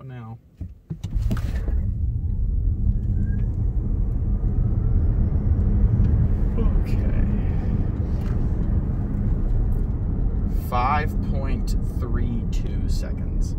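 A car accelerates hard with a low rumbling roar inside the cabin.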